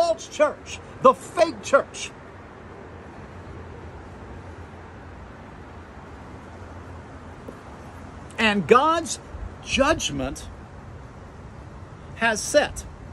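A middle-aged man speaks close by with animation, pausing now and then.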